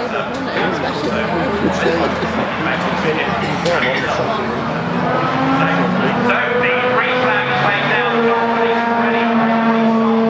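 Many racing car engines roar loudly, rising and falling in pitch as the cars accelerate past.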